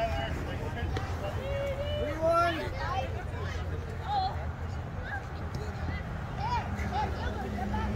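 Young boys shout and chatter across an open ballfield.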